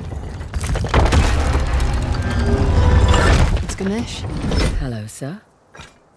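A heavy stone mechanism grinds and rumbles as it turns.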